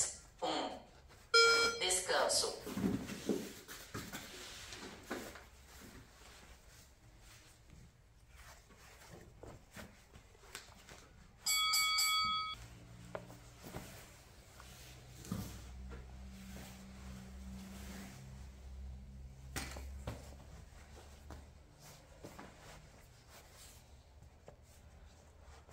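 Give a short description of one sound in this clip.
A thick cloth belt rustles and swishes as it is pulled and knotted.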